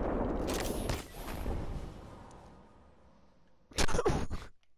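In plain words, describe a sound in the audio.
Wind rushes loudly past during a fall through the air, then fades.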